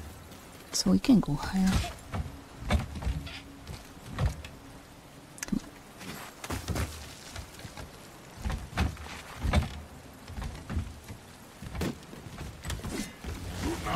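Footsteps knock on wooden planks.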